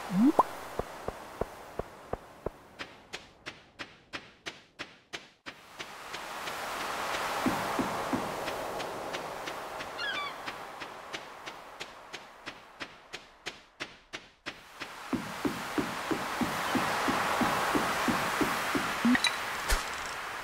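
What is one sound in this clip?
Ocean waves wash in and out softly, swelling and fading.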